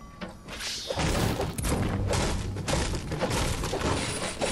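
A pickaxe strikes metal with ringing clanks.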